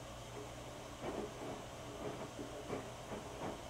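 Wet laundry tumbles and thumps inside a washing machine drum.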